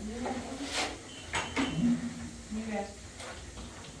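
A trowel clinks against a metal bucket.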